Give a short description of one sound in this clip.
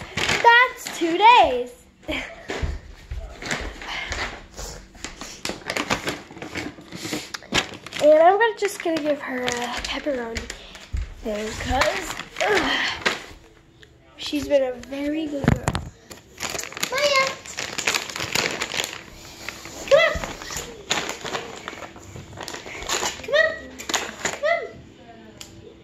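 A young girl talks with animation close to the microphone, her voice rising and falling.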